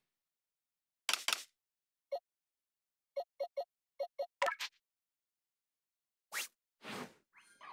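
Short electronic menu blips sound one after another.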